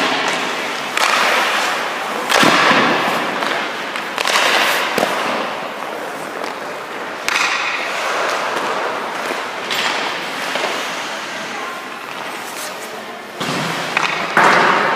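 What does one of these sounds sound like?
Hockey pucks smack off sticks and pads with sharp cracks.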